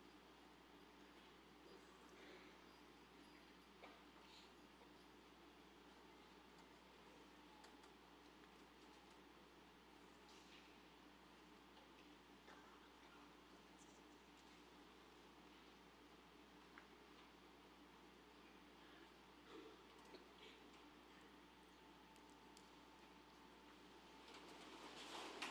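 An audience murmurs softly in a large echoing hall.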